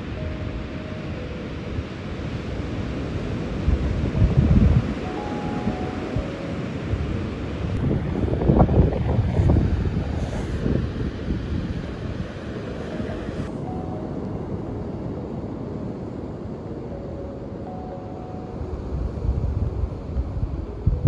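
Waves break and wash steadily onto a beach outdoors.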